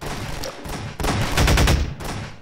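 A gun fires a few quick shots.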